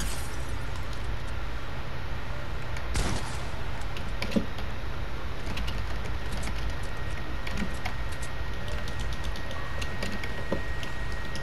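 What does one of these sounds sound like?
Short game sound effects click and clatter.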